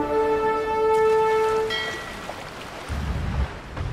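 Ship cannons boom in a naval battle.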